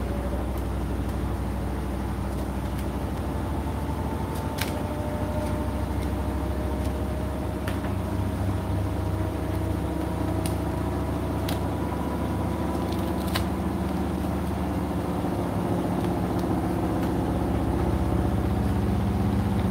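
A washing machine hums and whirs steadily.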